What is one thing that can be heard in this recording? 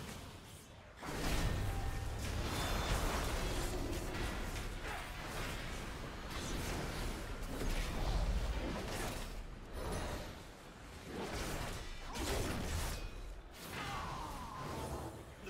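Spell blasts and clashing combat effects from a video game ring out.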